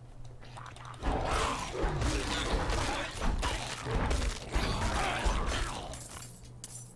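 Blows strike and clash loudly in a fight.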